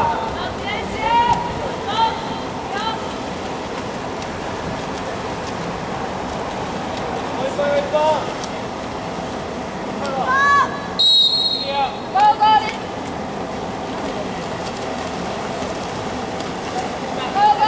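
Water splashes as swimmers thrash in a pool, outdoors.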